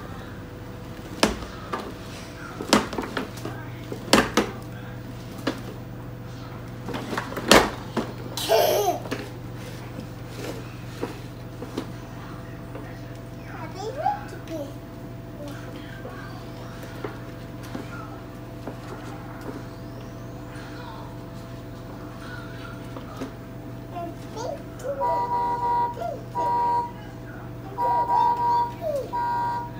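Plastic wheels of a toy ride-on car roll and rumble on a wooden floor.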